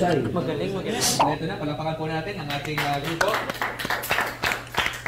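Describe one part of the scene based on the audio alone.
A group of young men clap their hands.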